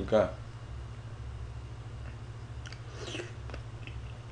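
A young man chews food noisily.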